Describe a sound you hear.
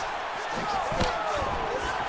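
A kick thuds against a body.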